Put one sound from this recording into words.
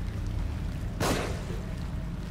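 A gunshot cracks.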